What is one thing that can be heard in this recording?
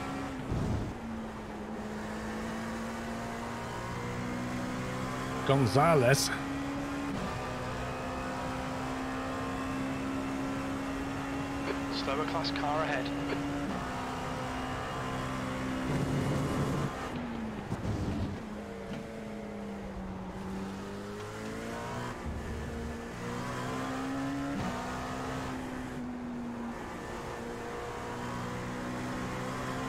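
A race car engine drones steadily, its pitch shifting with gear changes.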